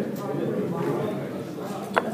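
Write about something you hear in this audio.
Game pieces click against a wooden board.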